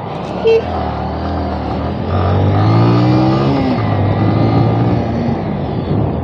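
A motorcycle engine rumbles and speeds up as the bike rides off.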